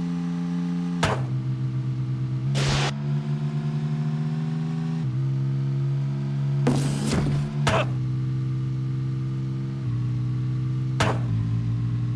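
Sharp thuds hit as a car smashes into boxes.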